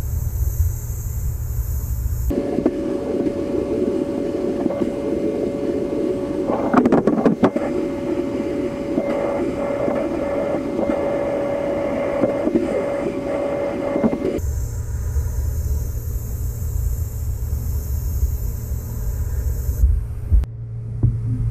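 A sandblasting gun roars and hisses steadily against metal.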